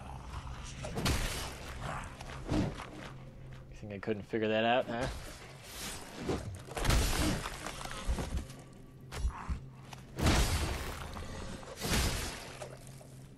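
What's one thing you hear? Blades swing and strike with heavy thuds.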